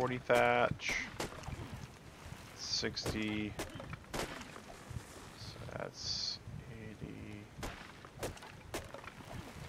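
An axe chops into a tree trunk with dull thuds.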